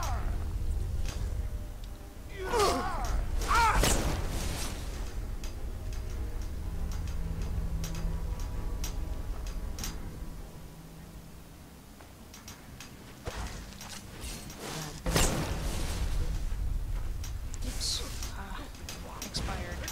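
A man shouts and growls aggressively close by.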